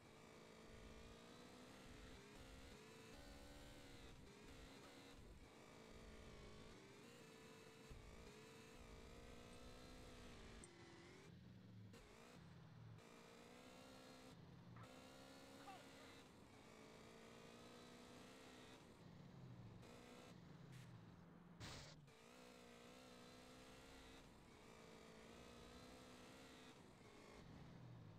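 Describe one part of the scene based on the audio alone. A motorbike engine drones and revs up and down.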